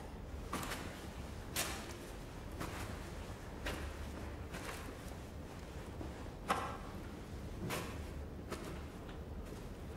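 Footsteps crunch slowly through sand.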